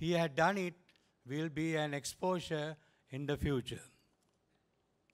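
An elderly man speaks formally through a microphone.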